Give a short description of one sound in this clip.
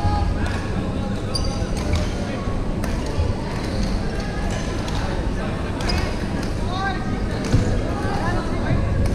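Young women chatter and call out in the distance.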